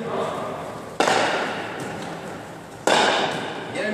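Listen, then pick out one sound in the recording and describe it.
A hard ball smacks against a wall in a large echoing hall.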